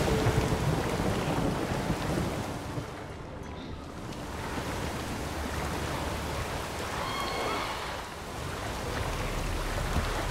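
A man swims, splashing through the water.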